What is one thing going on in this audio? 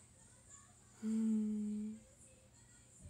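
A young woman hums a short steady note.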